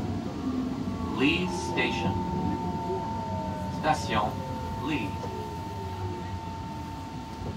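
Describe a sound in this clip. Train wheels screech and squeal on the rails.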